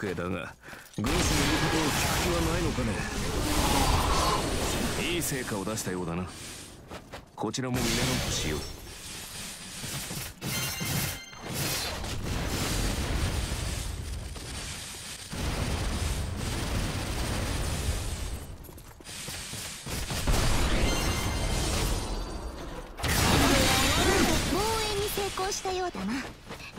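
Swords slash and clang in rapid succession.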